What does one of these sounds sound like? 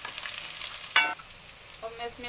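Chopped onions drop into a sizzling pan with a soft thud.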